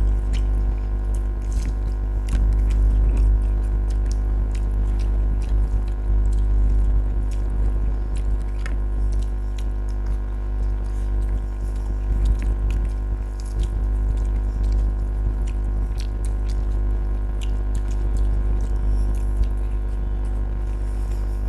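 Fingers squish and mix rice on plates.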